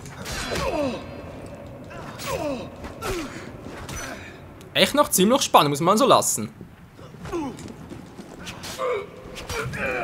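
Swords clash and ring in a fast fight.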